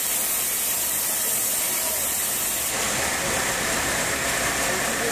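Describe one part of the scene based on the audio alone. A sawmill machine hums and rattles steadily.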